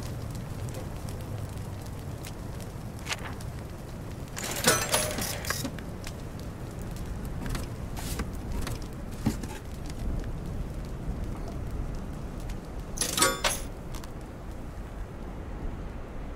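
A fire crackles softly.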